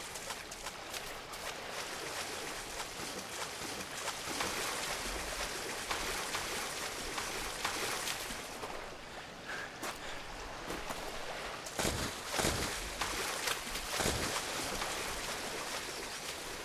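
Water splashes and sloshes as someone wades through it.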